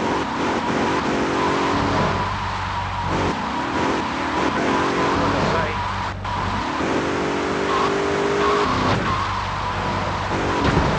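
A car engine hums and revs steadily as the car drives along.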